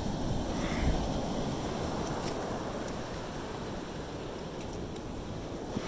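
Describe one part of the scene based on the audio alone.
A small plastic shovel scrapes through wet sand.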